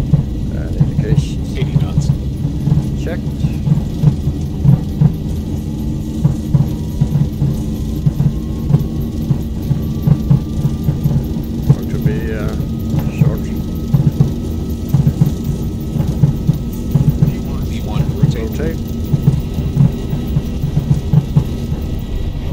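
Wheels rumble and thump over a runway.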